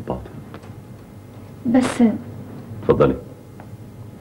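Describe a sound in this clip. A young woman answers quietly, close by.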